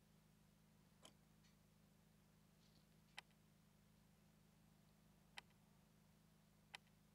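Short electronic menu clicks sound several times.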